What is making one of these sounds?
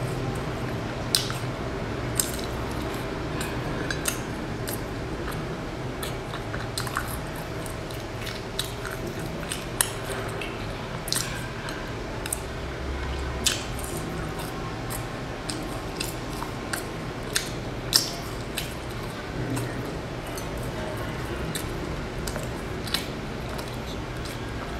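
A young woman chews crunchy food loudly, close to a microphone.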